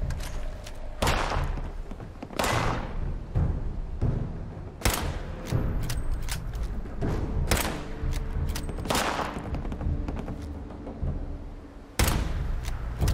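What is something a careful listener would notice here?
Pistol shots ring out one at a time, with a sharp crack and echo.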